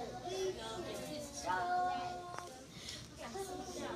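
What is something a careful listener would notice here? A young boy laughs and talks excitedly.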